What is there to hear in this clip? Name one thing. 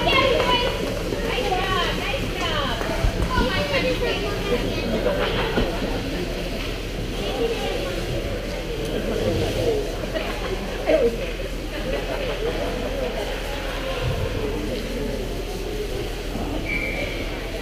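Young players shout and call out across a large echoing rink.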